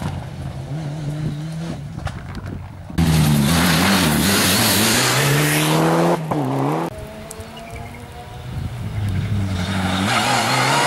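A rally car engine roars and revs hard as the car speeds past close by.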